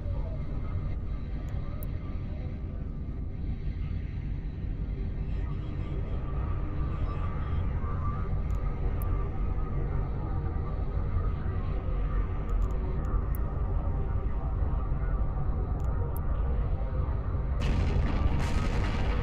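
A deep spaceship engine rumble drones steadily.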